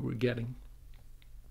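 A man speaks a few words briefly and calmly, close to a microphone.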